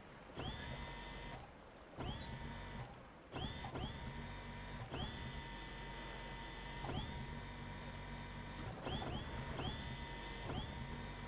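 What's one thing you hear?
Engines hum and repeatedly surge up in pitch.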